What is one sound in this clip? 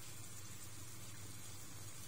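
Dried herbs patter softly from a spoon onto shrimp.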